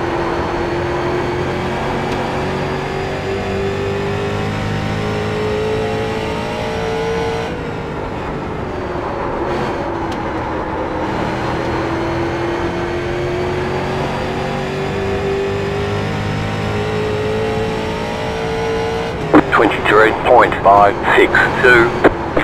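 A race car engine drones steadily, rising and falling in pitch through the laps.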